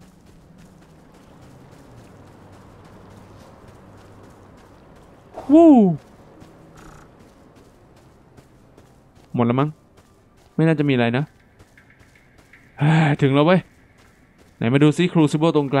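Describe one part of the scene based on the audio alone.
Quick footsteps patter on hard ground and dirt.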